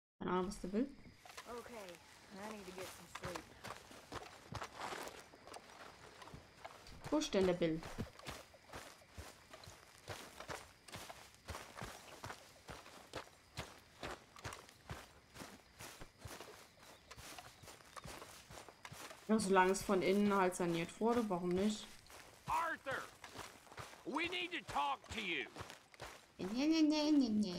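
Footsteps tread steadily over dirt and grass.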